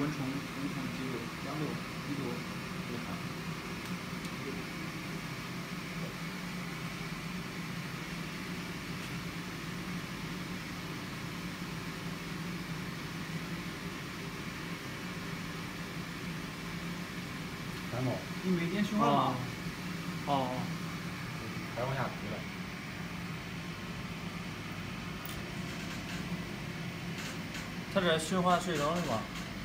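A machine hums steadily at a low pitch.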